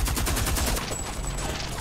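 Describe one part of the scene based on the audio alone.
A machine gun fires a rapid burst.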